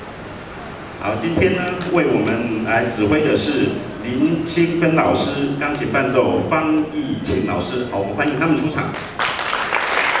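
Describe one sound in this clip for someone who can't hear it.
A large children's choir sings together.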